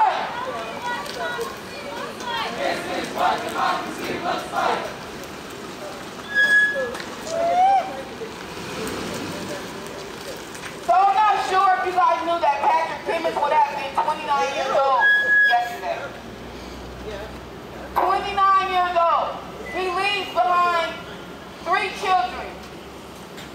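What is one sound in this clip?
A crowd of people talks and shouts outdoors at a distance.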